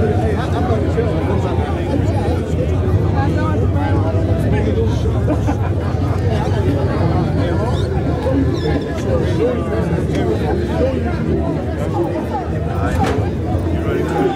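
A crowd of men talks all around at close range, outdoors.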